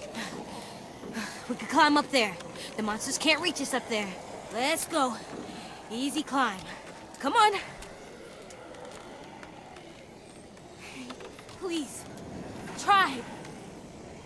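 A young boy speaks pleadingly, close by.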